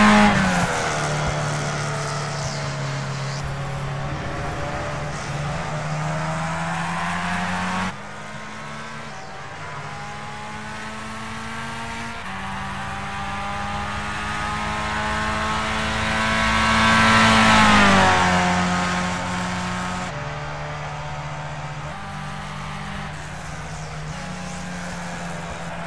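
A racing car engine whines loudly, its pitch climbing and dropping as the car speeds up and brakes.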